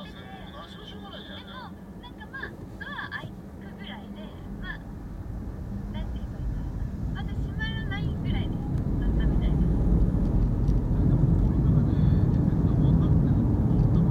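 A car engine hums from inside the car and grows louder as it speeds up.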